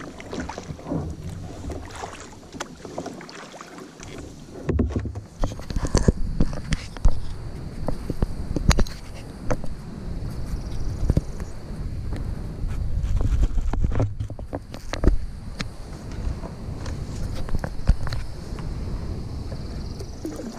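Water laps and splashes against a kayak hull.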